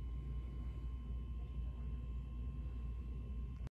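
Paper rustles faintly as a stack of posters is shifted.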